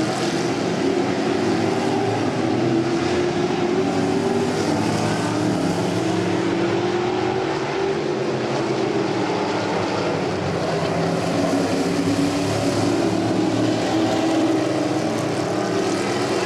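Engines rise and fall in pitch as the cars accelerate through the turns.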